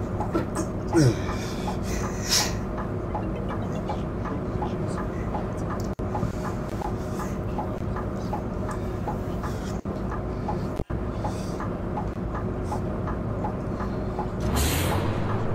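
A bus engine idles with a steady, low, ticking rumble.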